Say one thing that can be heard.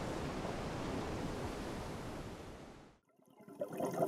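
Water washes against the hull of a ship moving through the sea.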